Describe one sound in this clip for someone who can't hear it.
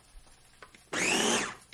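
A food chopper whirs loudly as it blends.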